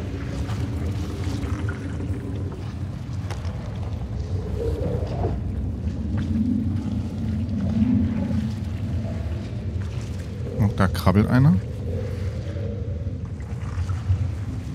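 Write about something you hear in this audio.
A low, eerie drone rumbles steadily throughout.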